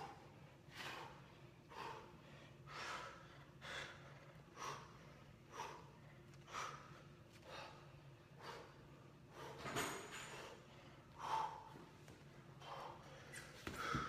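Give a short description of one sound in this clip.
A young man exhales sharply and rhythmically with effort.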